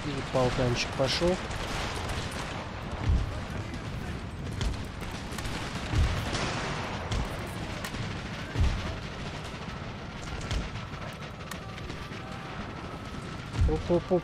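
Weapons clash and armour rattles in a distant battle.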